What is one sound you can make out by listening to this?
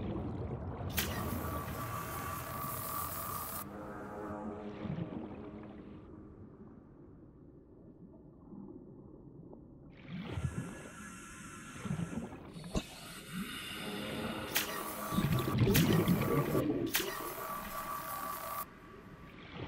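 A repair tool hisses and buzzes in steady bursts.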